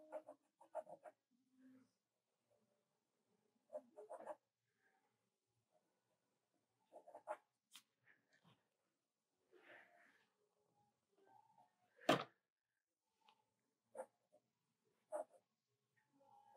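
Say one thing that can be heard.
A pencil scratches and rasps across paper in short strokes.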